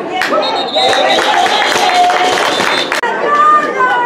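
A crowd of young men chatter and cheer nearby.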